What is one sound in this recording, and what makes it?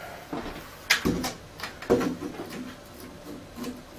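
A plastic device clicks as it is handled.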